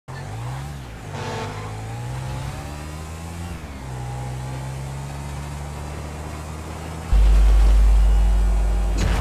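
A motorcycle engine revs and whines as it speeds along.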